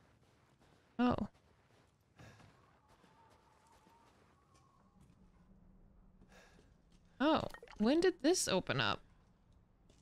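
A young woman speaks close to a microphone, with animation.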